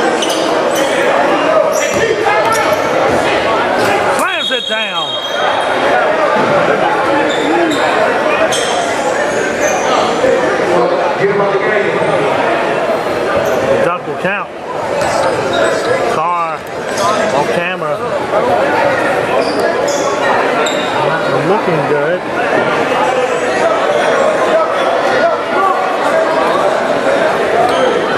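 A crowd of spectators chatters loudly in an echoing gym.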